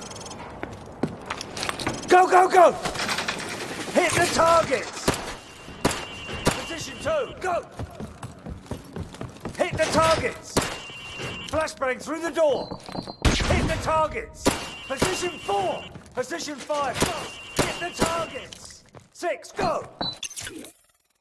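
A pistol fires sharp shots, echoing around a large hall.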